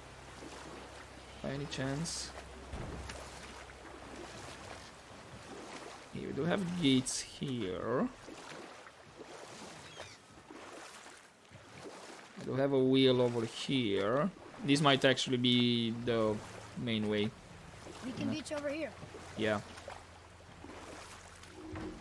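Oars splash and stroke through water.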